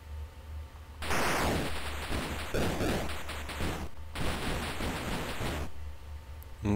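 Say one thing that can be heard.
Electronic game sound effects buzz and bleep.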